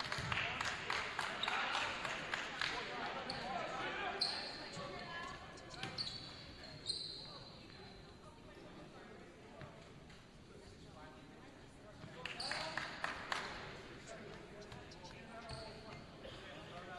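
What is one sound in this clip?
A volleyball is struck with a hard smack.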